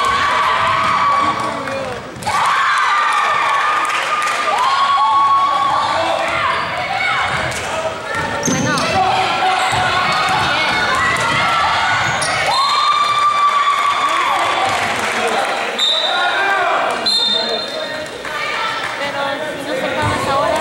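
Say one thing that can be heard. Sneakers squeak sharply on a hard court in an echoing hall.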